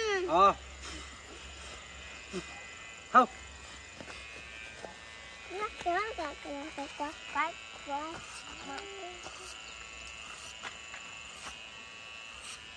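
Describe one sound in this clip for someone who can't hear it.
Electric hair clippers buzz steadily.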